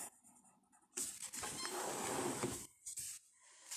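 A sheet of paper slides and rustles briefly.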